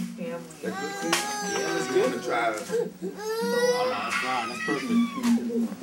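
A toddler squeals and whines in a high voice.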